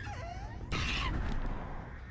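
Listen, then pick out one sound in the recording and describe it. A clawed creature swipes through the air with a sharp whoosh.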